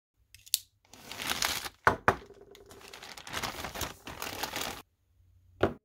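A plastic mailer bag crinkles and rustles as hands tear it open.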